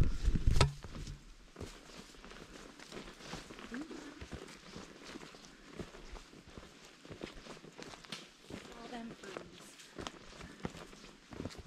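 Footsteps crunch and rustle on a leafy path.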